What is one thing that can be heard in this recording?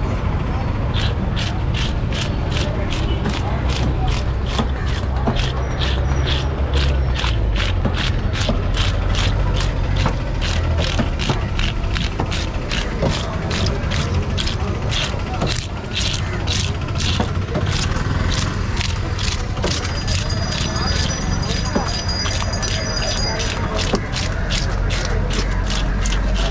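A blade scrapes scales off a fish with quick, rhythmic rasping strokes.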